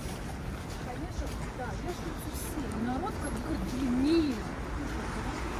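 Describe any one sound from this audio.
A young woman talks on a phone close by.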